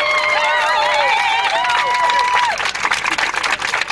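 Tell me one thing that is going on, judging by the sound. Many people clap their hands.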